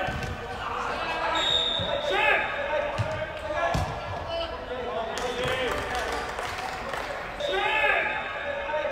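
Men shout and call to each other in a large echoing hall.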